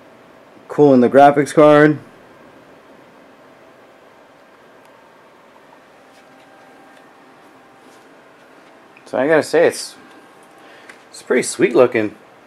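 A computer fan hums softly and steadily.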